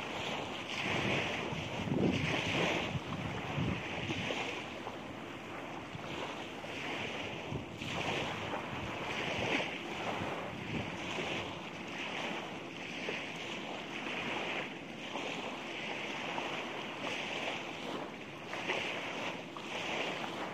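Waves wash onto a shore nearby.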